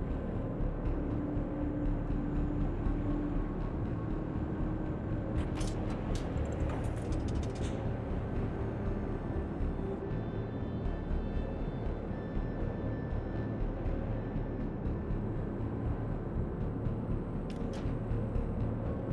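A large ship's engines rumble low and steady.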